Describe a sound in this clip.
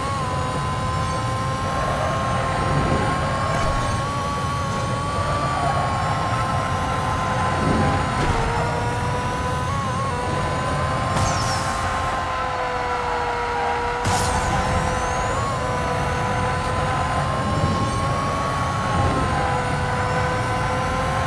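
A racing car engine roars at high speed, holding a steady high whine.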